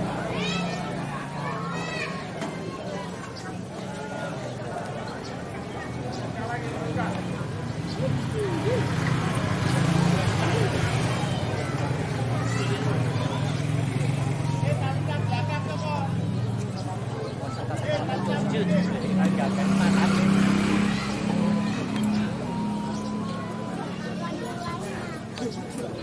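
Men shout and call out outdoors around horses in a starting gate.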